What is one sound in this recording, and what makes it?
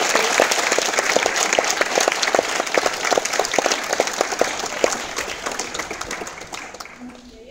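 An audience applauds in a large hall, slowly fading.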